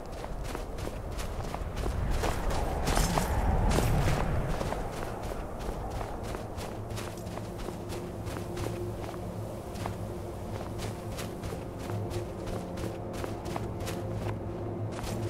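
Armoured footsteps crunch steadily over snow.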